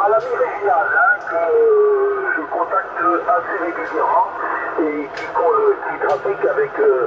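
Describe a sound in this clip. A man talks through a crackly radio loudspeaker.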